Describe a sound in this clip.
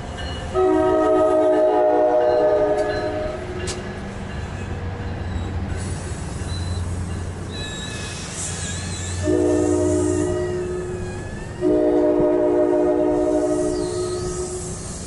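A train horn blares in long, loud blasts.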